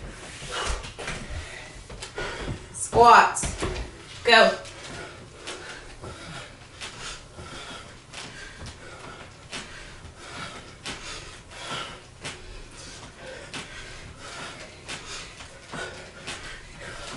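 A woman speaks with animation into a handheld microphone, close by.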